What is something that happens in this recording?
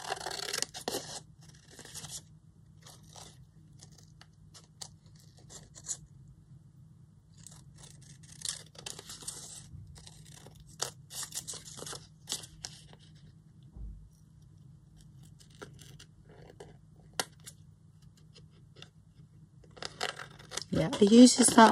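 Scissors snip and slice through stiff paper.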